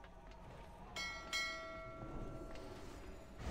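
Bell-like chimes ring out sharply and fade.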